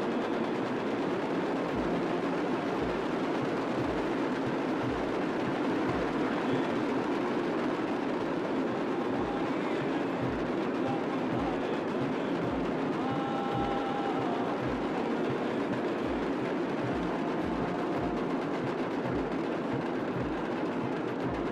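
A large group of drummers beats drums in a loud, steady rhythm.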